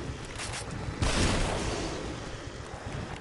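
A gunshot bangs.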